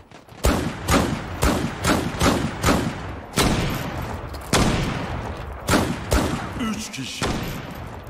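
Gunshots from a revolver crack in a quick series.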